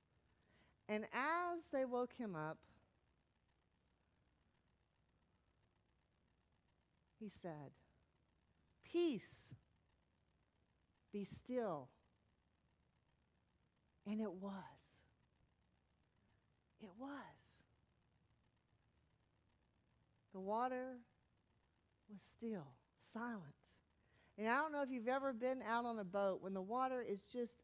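A woman speaks with animation through a microphone, pausing between phrases.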